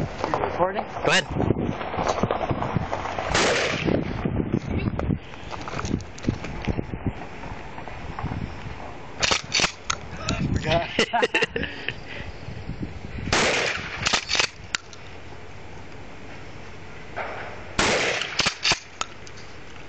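A shotgun fires loud, echoing blasts outdoors, one shot every few seconds.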